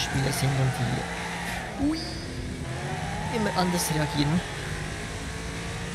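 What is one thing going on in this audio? A racing car engine roars and revs.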